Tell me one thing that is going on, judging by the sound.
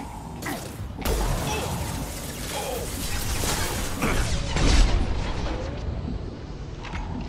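Gunshots crack and echo in quick bursts.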